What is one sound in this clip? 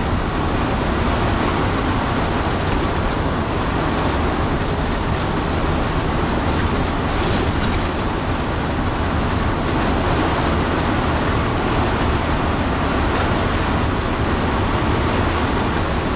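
A bus engine drones steadily while driving on a highway.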